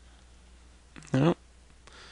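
A man speaks briefly, close to a microphone.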